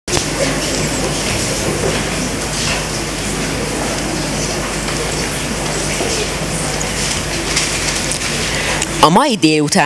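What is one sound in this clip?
A teenage girl reads aloud through a microphone in a hall.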